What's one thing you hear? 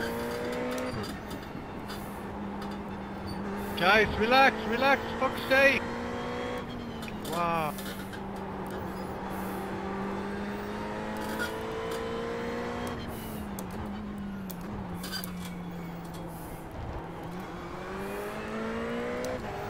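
A race car engine drones steadily, rising and falling in pitch with gear changes.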